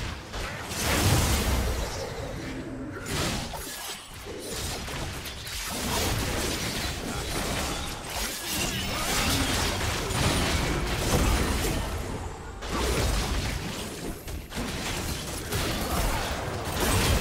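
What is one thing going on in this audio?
Spell blasts, hits and sword clashes crackle and boom throughout a fast game fight.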